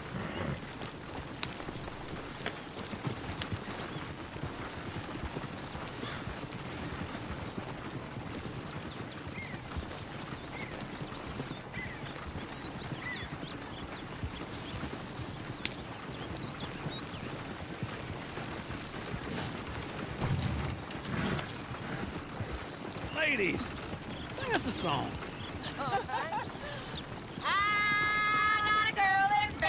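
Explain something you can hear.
Horses' hooves clop on the dirt.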